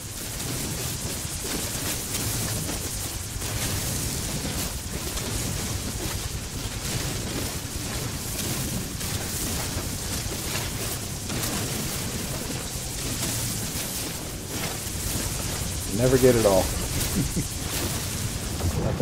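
A mining beam hisses and crackles steadily against rock.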